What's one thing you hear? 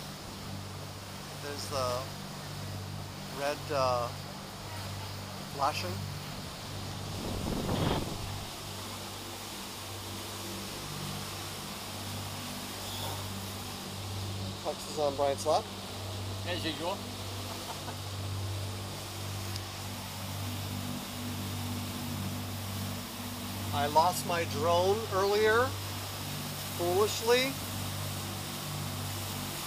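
A boat engine hums steadily.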